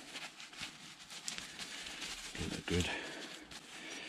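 A cloth rubs and rustles against a small metal part.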